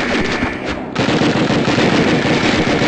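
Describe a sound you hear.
A rifle fires in a rapid, loud burst.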